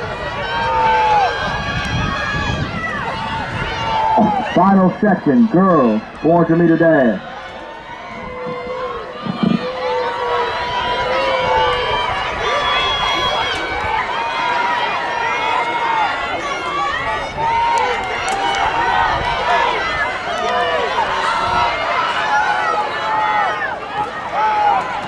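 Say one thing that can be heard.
A crowd of spectators cheers and shouts in the distance outdoors.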